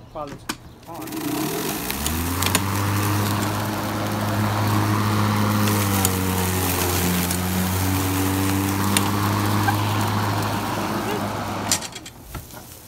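An electric lawn mower motor starts up and whirs steadily, then stops.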